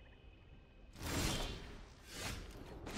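A deep swelling chime sounds.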